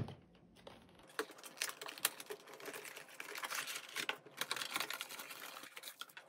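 Cardboard and plastic packaging rustle and crinkle as a box is opened.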